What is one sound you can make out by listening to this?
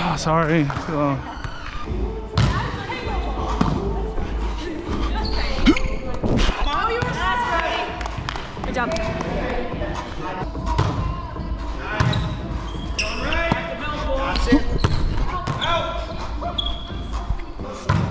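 A large gym echoes with the players' voices.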